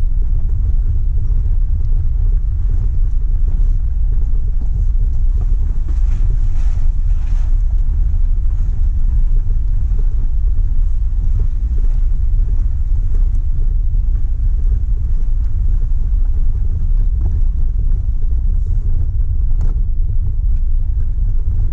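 Tyres crunch and rattle over a rough gravel track.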